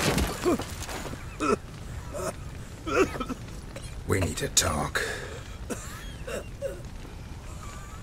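An older man groans and gasps in pain.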